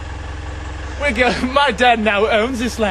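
A young man talks cheerfully close by.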